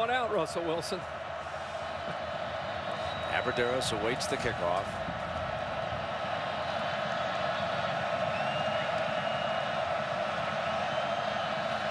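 A large stadium crowd roars steadily outdoors.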